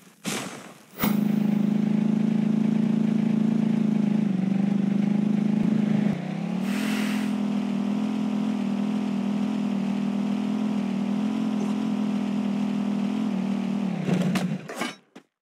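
A motorcycle engine drones steadily.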